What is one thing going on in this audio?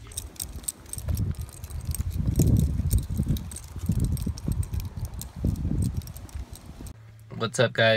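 Small paws patter on pavement.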